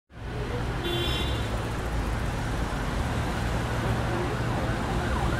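City traffic rumbles steadily along a wet street.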